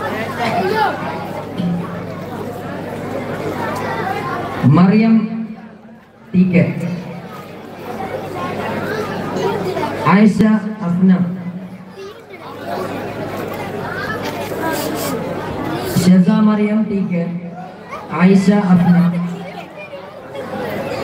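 A man announces over a loudspeaker in a large echoing space.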